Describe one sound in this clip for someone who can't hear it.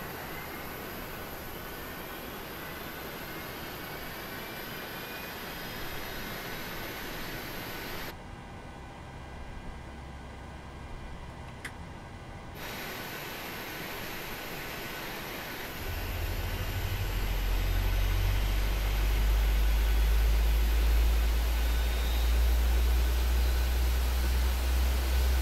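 Jet engines whine and hiss steadily nearby, then build into a deep, swelling roar.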